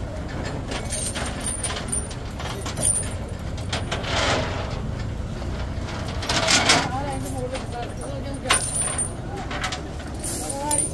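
A crowd of men chatters nearby outdoors.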